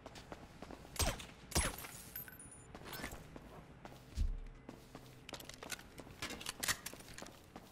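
Gunshots ring out sharply, one after another.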